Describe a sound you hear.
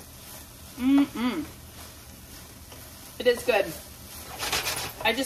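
A spoon stirs and scrapes food in a pan.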